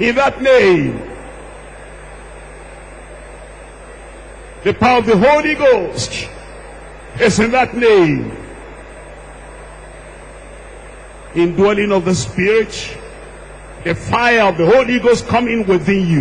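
A man preaches forcefully into a microphone in a large echoing hall, in bursts with pauses.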